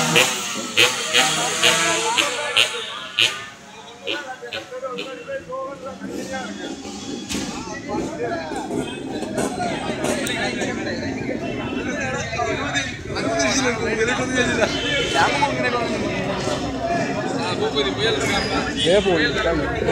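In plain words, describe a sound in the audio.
A large outdoor crowd of men chatters loudly all around.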